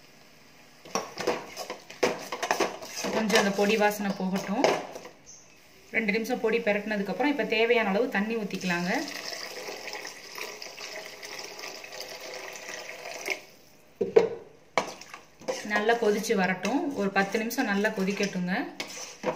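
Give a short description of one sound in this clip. A metal spatula scrapes and stirs food in a metal pan.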